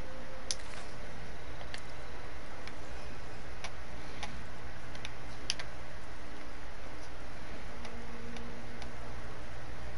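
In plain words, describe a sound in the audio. A game menu gives short clicks as items are selected.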